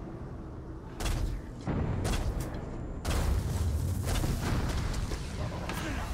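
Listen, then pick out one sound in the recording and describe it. Fire bursts with loud booming blasts.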